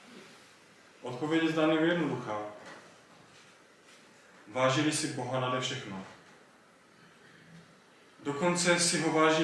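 A young man speaks calmly into a microphone in short phrases with pauses.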